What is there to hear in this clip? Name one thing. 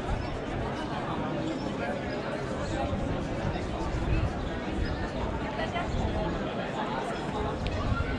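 A crowd of people chatters outdoors in a busy street.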